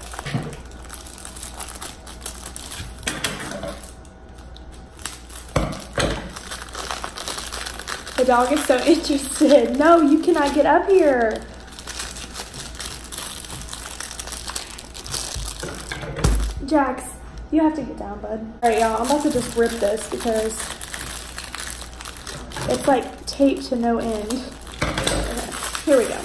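Plastic packaging crinkles in hands.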